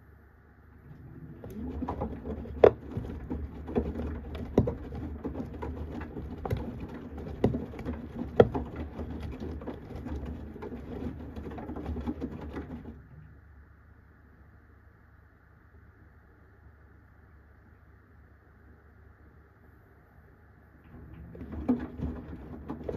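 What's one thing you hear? Wet laundry tumbles and sloshes inside a washing machine drum.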